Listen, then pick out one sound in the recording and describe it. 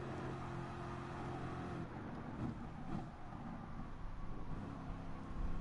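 A race car engine roars loudly and close, its pitch dropping as it shifts down through the gears.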